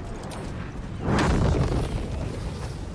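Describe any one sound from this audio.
A magical spell bursts with a loud whoosh.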